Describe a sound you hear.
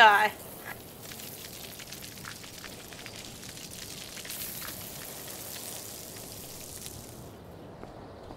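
Water sprays and hisses from a sprinkler.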